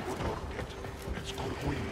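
A blade swings through the air with a whoosh.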